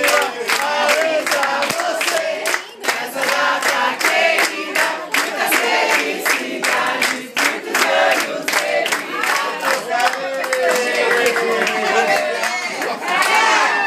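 A group of adults sings together nearby.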